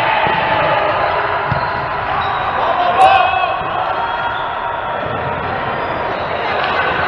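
Young adult players call out to each other in an echoing hall.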